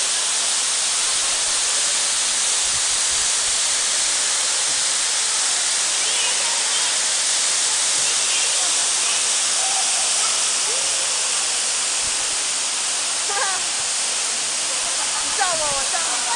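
A tall waterfall roars and splashes steadily.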